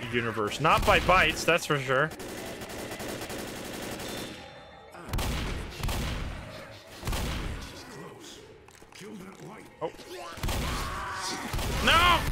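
A shotgun fires loud blasts.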